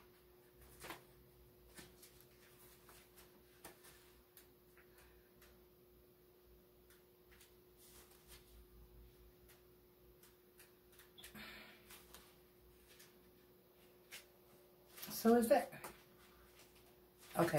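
Pages of a small book rustle as a young woman turns them.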